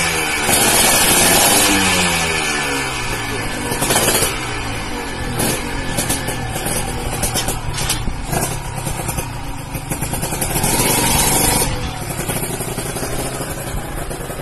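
A racing motorcycle engine revs loudly and sharply, its pitch rising and falling.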